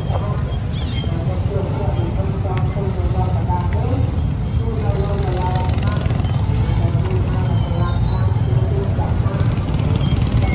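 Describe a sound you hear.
Motorbikes putter past.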